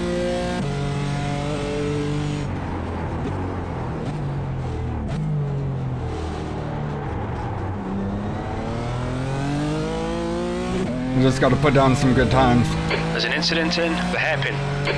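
A race car engine revs up and down through the gears.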